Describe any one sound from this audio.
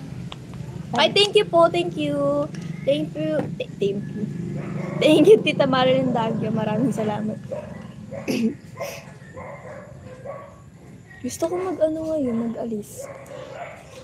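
Young women talk casually close to a phone microphone.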